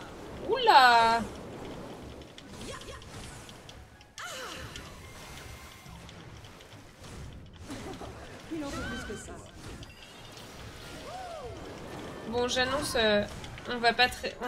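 Sword swipes whoosh through the air.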